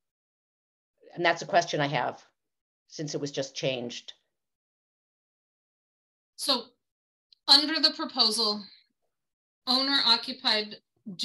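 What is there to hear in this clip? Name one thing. A woman speaks over an online call, pausing between phrases.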